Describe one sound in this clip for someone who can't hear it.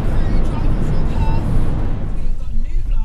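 Road noise rumbles steadily inside a moving car.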